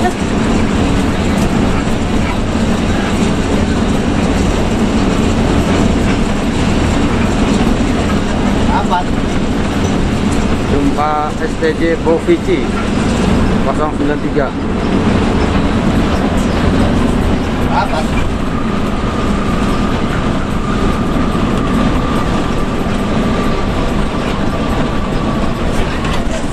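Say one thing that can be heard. A bus engine drones steadily, heard from inside the cabin.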